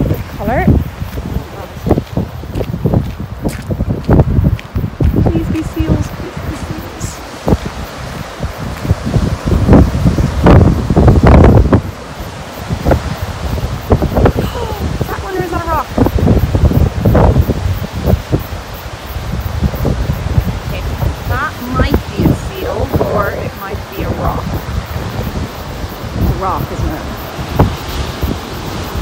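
Strong wind gusts and buffets loudly outdoors.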